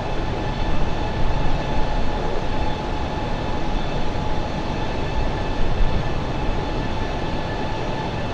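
Jet engines roar with a steady, deep rumble.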